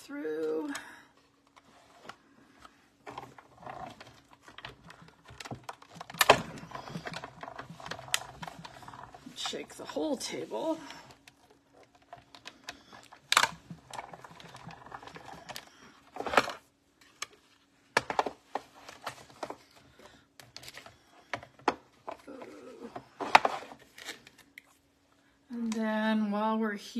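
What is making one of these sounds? Paper and plastic plates rustle and slide under a hand.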